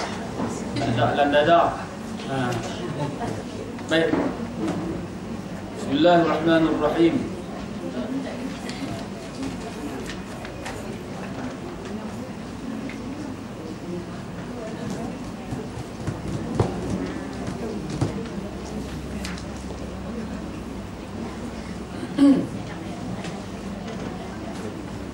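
A man speaks calmly into a microphone, heard through a loudspeaker in a room.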